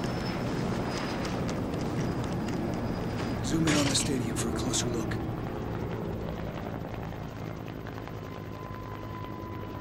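A helicopter's rotor thuds steadily in the distance.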